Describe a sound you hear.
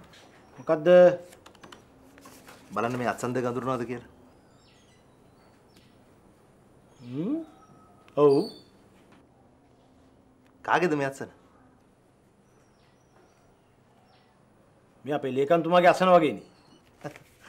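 An older man speaks calmly and close by.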